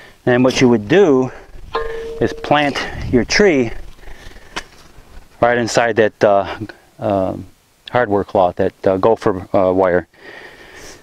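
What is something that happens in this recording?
A man talks calmly outdoors, close by.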